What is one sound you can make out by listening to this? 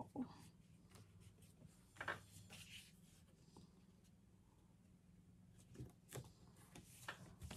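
Paper rustles and slides under hands.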